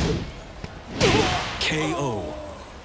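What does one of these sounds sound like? A loud burst and whoosh sounds as a fighter is knocked out.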